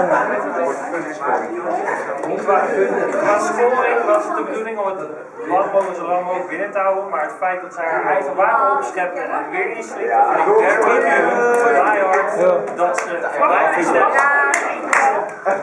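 Several young men and a young woman sing together close by.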